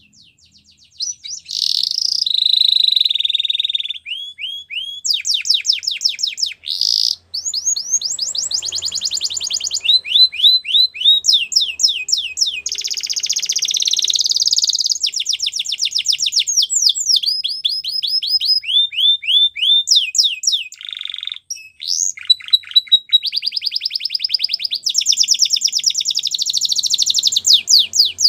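A canary sings close by in long, fast trills and chirps.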